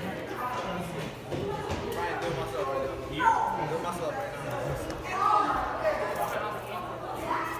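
Several young men talk and call out nearby.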